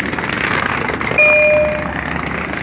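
A two-tone chime sounds from a train's loudspeaker.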